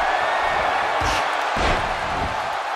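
A heavy thud sounds as a wrestler hits the mat.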